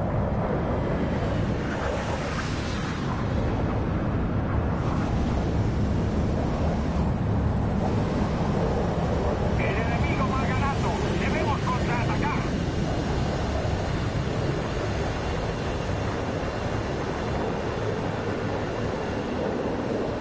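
A jet engine roars loudly and steadily with afterburner.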